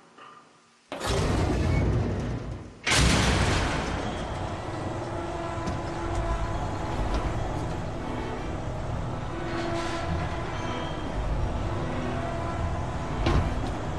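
A lift cage rumbles and rattles as it descends.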